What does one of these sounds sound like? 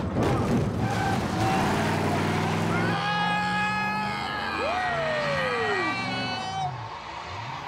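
A middle-aged man screams in terror close by.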